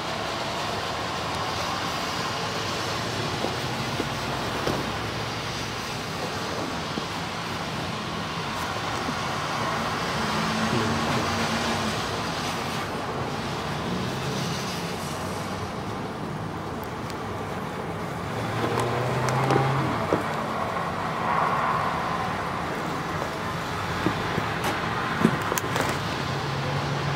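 Traffic passes steadily on a wide road, heard from behind glass.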